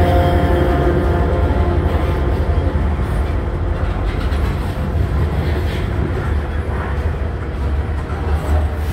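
Train wheels squeal and clatter over the rails.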